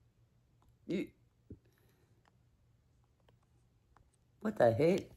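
A middle-aged woman speaks calmly and close up.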